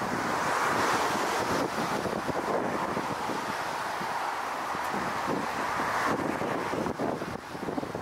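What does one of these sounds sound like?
Aircraft tyres rumble on the runway.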